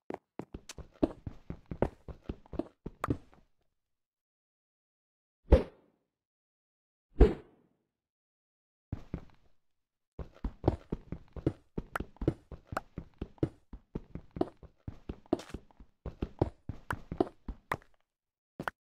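A game pickaxe rapidly chips at stone blocks.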